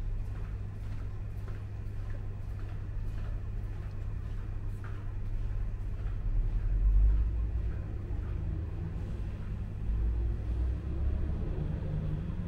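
A bus drives past with a low engine rumble.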